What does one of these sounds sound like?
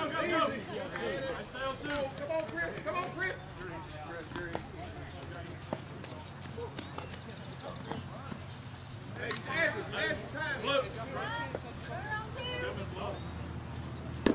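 Adult softball players call out to each other across an open field.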